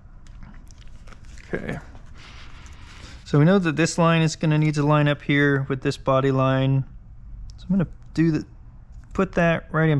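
A sheet of paper transfer tape rustles as it is handled.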